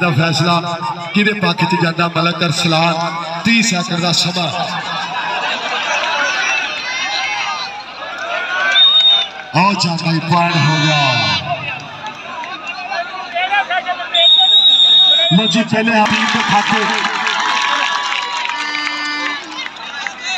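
A man commentates loudly and excitedly over a loudspeaker.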